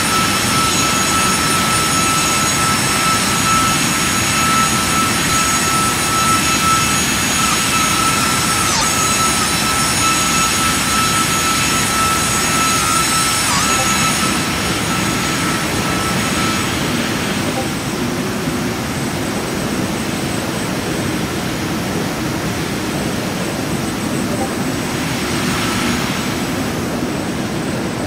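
Jet engines roar steadily as an airliner flies.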